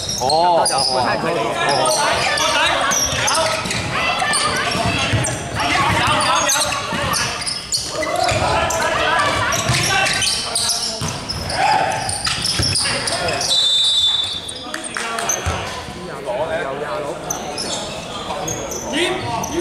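Basketball shoes squeak sharply on a wooden court in a large echoing hall.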